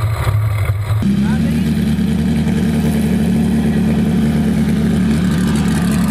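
An off-road buggy engine revs hard as the vehicle drives past.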